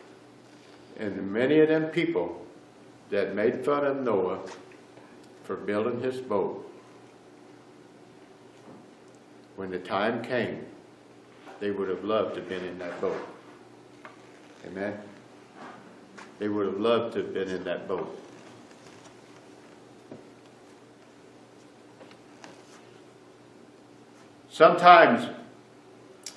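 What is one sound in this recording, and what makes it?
A middle-aged man speaks with animation in short bursts, with pauses, in a room with slight echo.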